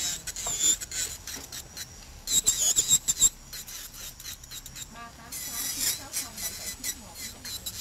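An electric nail drill whirs in short, high-pitched bursts against a nail.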